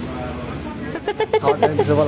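A young man laughs heartily up close.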